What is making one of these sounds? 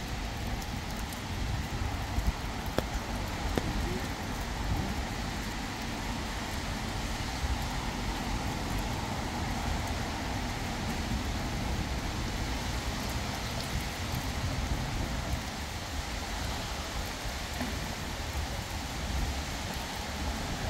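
Footsteps patter on wet paving.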